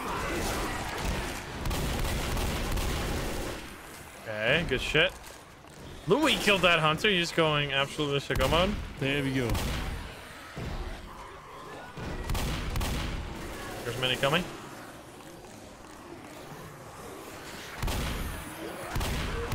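Shotguns fire in rapid, loud blasts.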